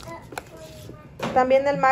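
Hands toss chopped vegetables in a foil tray with a soft rustle.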